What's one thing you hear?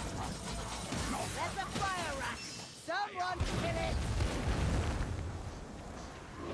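Fiery explosions boom and roar.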